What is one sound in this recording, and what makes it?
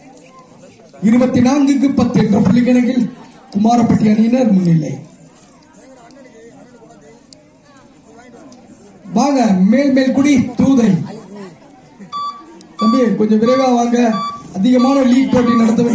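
A man announces loudly over a loudspeaker.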